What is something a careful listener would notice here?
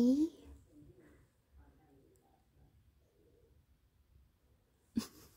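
A cat purrs softly close by.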